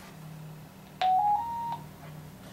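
A short electronic beep sounds from a radio set.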